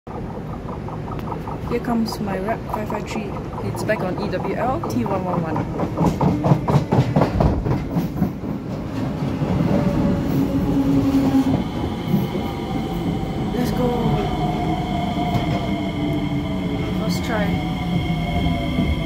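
A train rumbles closer along an elevated track and rolls past close by.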